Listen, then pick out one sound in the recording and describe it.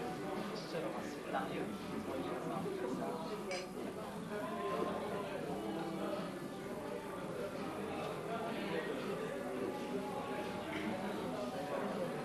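Several adults chat together nearby, voices overlapping.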